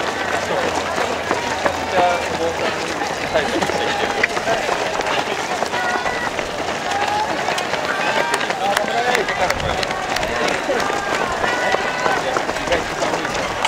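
A crowd of spectators cheers and calls out close by.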